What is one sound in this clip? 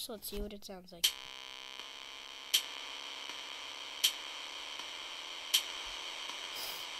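Electronic notes play a simple tune over a steady beat.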